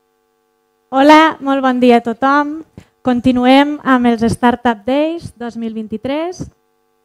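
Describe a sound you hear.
A young woman speaks into a microphone over loudspeakers with animation.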